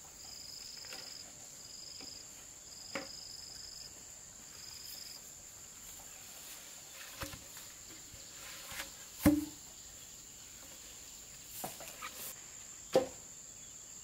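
Bamboo poles knock and clatter against each other.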